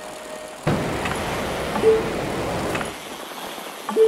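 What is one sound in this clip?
A bicycle's tyres roll and crunch over a dirt track.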